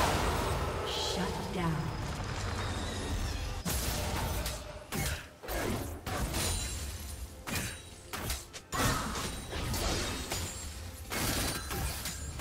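Magic blasts and clashing weapon effects burst again and again.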